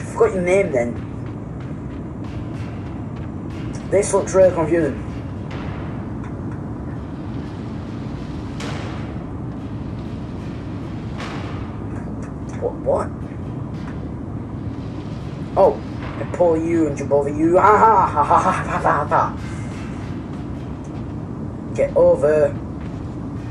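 A young man talks in short bursts into a close microphone.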